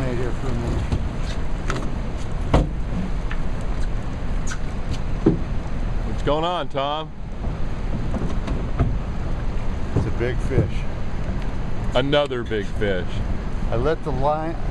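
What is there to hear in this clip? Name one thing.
Wind buffets the microphone outdoors on open water.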